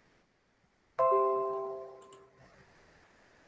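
A computer notification chime rings out and slowly fades.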